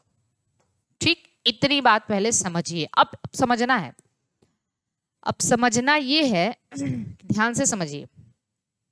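A woman speaks clearly into a close microphone, explaining calmly.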